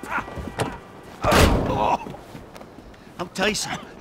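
Punches thud during a scuffle.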